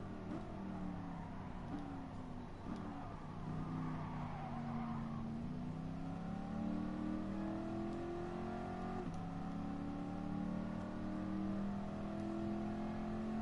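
A car engine roars, dropping in pitch as it slows and then climbing steadily as it speeds up.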